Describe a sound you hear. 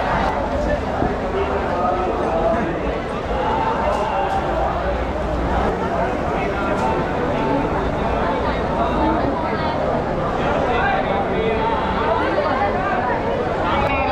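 A large crowd chatters and murmurs all around.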